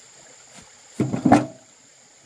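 Bricks knock against each other and clunk in a metal wheelbarrow.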